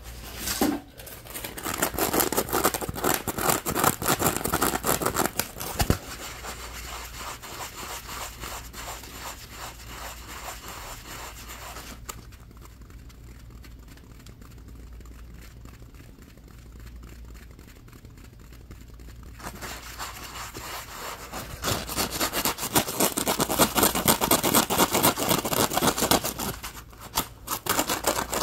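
Hands rapidly squeeze and crinkle a foam sponge close to a microphone.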